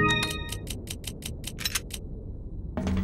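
Quick electronic beeps chime in a rapid series.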